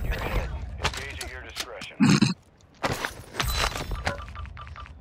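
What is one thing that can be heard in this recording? Gunfire crackles in sharp bursts.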